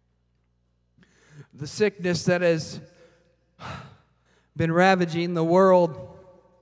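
A man speaks with animation into a microphone, heard through loudspeakers in a large echoing hall.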